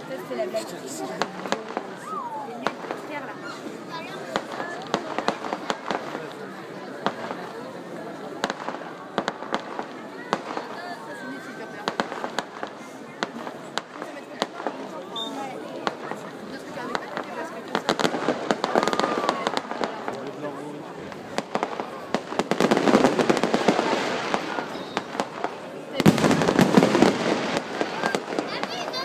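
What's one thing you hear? Firework bangs pop in quick bursts.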